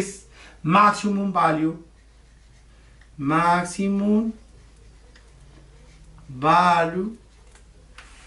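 A middle-aged man speaks calmly and slowly, close to the microphone.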